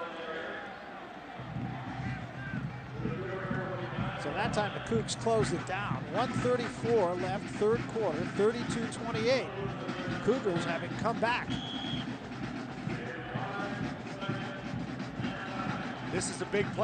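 A large crowd cheers and roars in an open stadium.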